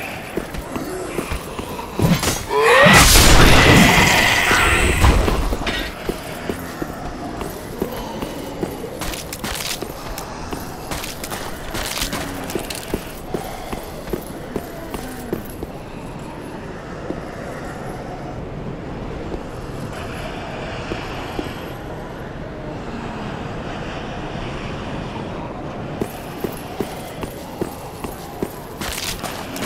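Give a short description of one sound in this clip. Armoured footsteps clink and scrape on stone.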